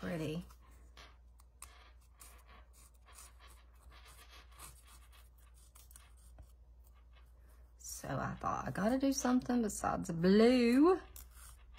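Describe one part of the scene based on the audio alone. A nail file rasps lightly against a paper edge.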